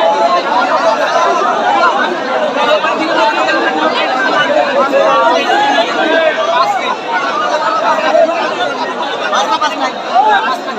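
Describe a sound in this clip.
A large outdoor crowd chatters and shouts excitedly.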